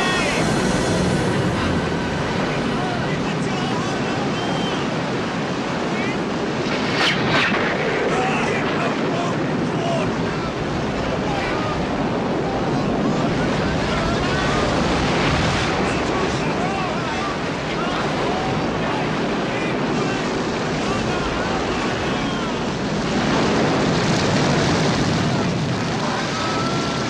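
Strong wind howls outdoors.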